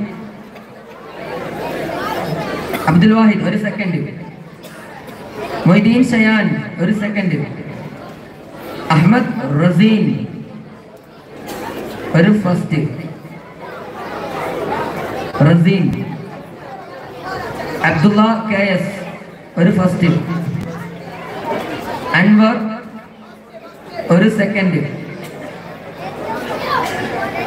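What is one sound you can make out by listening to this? A man sings loudly through a loudspeaker in short repeated phrases, outdoors.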